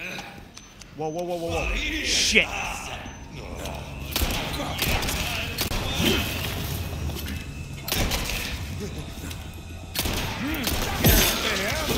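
Men growl and groan menacingly nearby.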